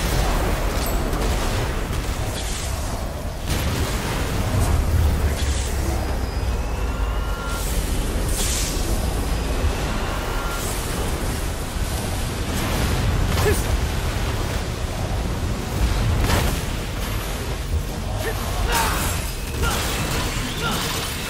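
Energy blasts crackle and roar.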